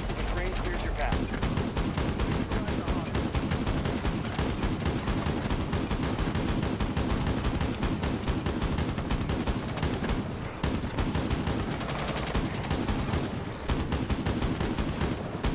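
A rifle fires in rapid bursts of gunshots.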